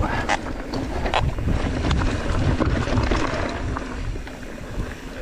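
Bike tyres crunch and rattle over a rough dirt trail.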